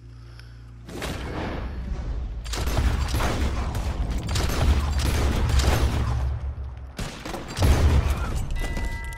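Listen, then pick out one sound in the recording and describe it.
Gunshots fire rapidly in a loud, echoing volley.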